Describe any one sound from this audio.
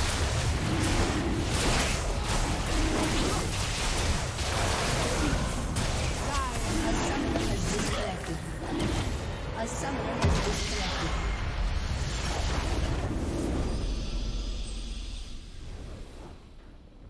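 Game spell effects whoosh and crackle amid bursts of impacts.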